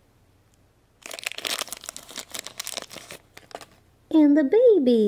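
A plastic wrapper crinkles and rustles as hands tear it open.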